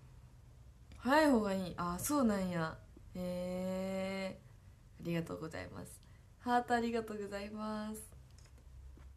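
A teenage girl speaks cheerfully, close by.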